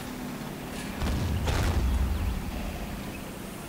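A tank cannon fires with a deep boom.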